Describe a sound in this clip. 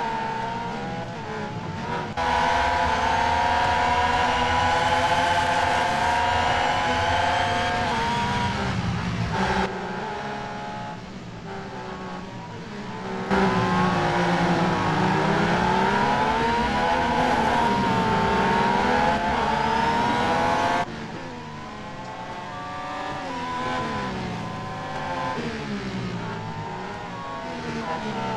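Racing car engines whine loudly, rising and falling in pitch as the cars shift gears.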